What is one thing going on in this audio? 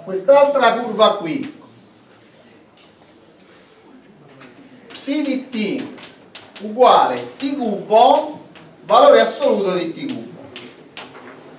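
A middle-aged man speaks clearly in a lecture, with a slight room echo.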